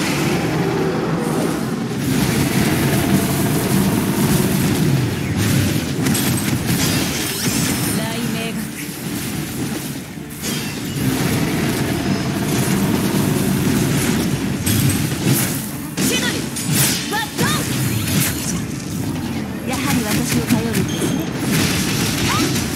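Blades clash and strike again and again.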